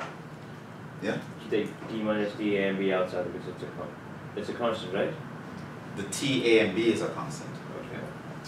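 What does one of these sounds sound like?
A man speaks calmly and explains.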